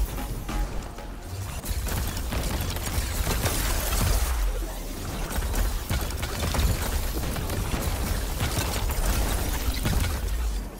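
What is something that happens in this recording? Electric blasts crackle and zap in rapid bursts.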